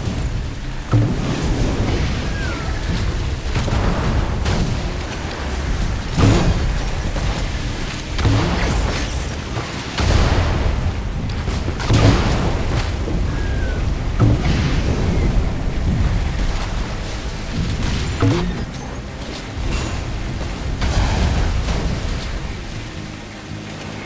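A game boat's engine hums steadily.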